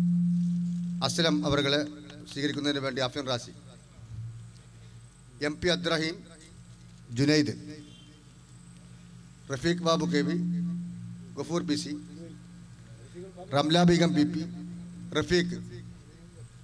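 A man speaks with animation into a microphone over loudspeakers, echoing outdoors.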